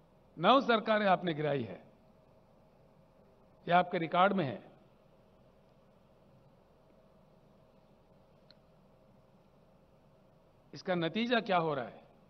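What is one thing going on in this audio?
An elderly man speaks into a microphone in short, emphatic bursts with long pauses.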